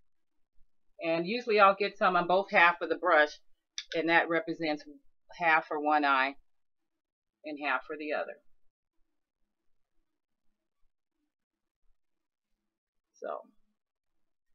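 A woman talks calmly and closely into a microphone.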